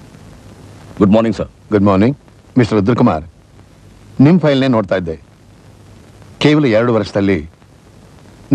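A man speaks forcefully, close by.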